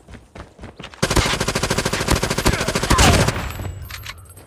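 Rapid gunfire rattles in a fast burst.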